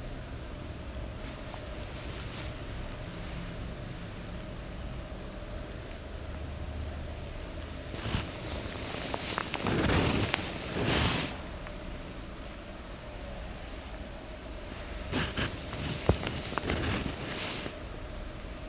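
Hands rub and press softly on oiled skin.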